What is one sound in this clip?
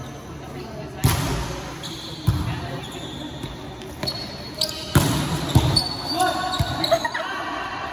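A volleyball thumps off players' hands and arms in an echoing hall.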